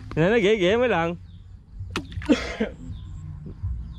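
A plastic bottle splashes into water.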